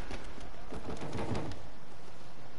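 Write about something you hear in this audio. A heavy punch thuds.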